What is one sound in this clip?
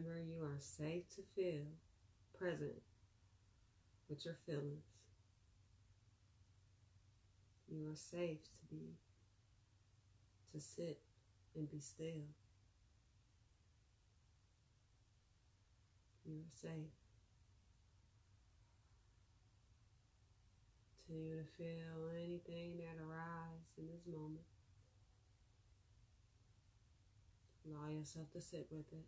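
A young woman speaks calmly and slowly close by, with long pauses.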